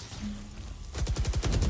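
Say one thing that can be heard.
Rapid gunshots fire in a burst.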